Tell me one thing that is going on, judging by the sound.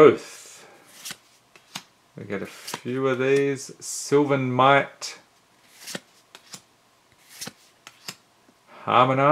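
Playing cards slide and tap against each other in hand.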